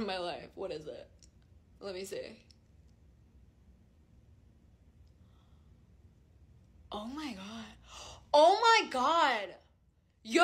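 A young woman speaks and sings with animation close to the microphone.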